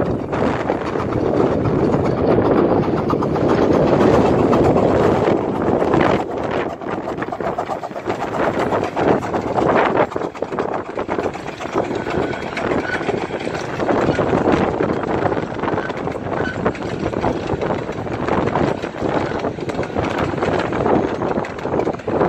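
A steam locomotive chuffs loudly as it passes close by.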